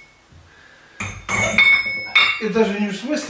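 Iron weight plates clank against each other.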